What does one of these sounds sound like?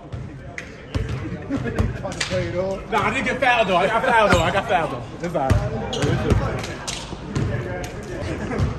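Men talk and laugh close by.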